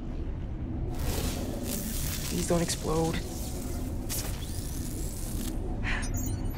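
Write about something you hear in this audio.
Electricity crackles and sizzles close by.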